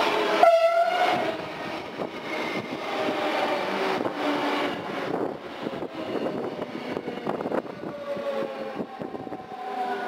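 A train's wheels clatter along the track close by.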